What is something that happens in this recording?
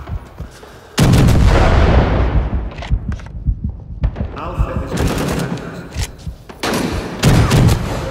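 A shotgun fires with a loud boom that echoes away.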